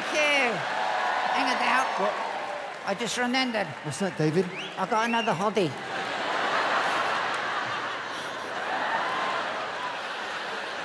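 An audience laughs and cheers in a large hall.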